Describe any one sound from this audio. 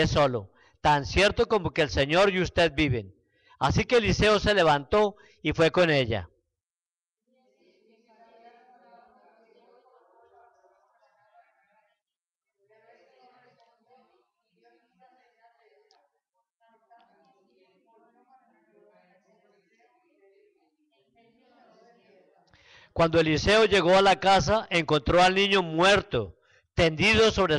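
A man speaks into a microphone over loudspeakers in an echoing hall.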